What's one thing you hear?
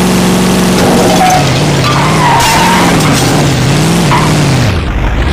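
Tyres screech while skidding.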